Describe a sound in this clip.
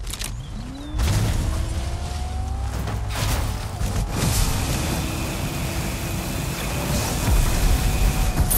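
A car engine roars as it speeds over rough ground.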